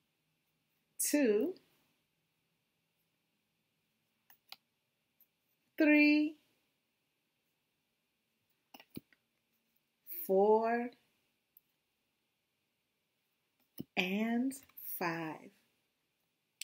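A woman speaks up close, calling out short words one at a time with pauses between them.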